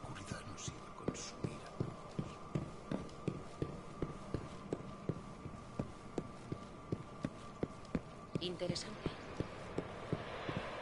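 Footsteps thud quickly and evenly as a person runs.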